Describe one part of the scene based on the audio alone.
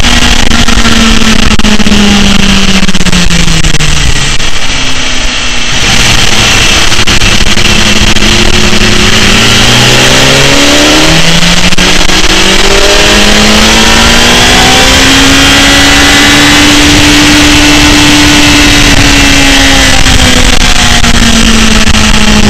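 A motorcycle engine roars loudly up close, its pitch rising and falling as it changes gear.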